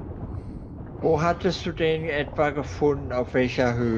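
A middle-aged man speaks with animation into a close microphone.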